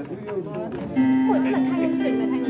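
An electric keyboard plays sustained notes.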